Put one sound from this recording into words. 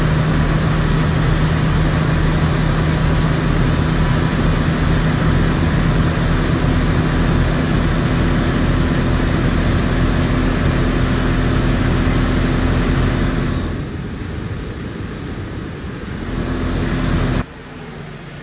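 A truck engine drones loudly and steadily from inside the cab.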